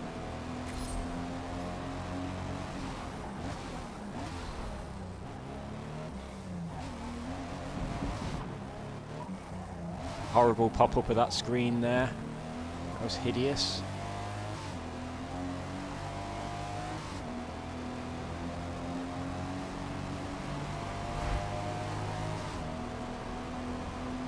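A car engine revs up and drops back as gears shift.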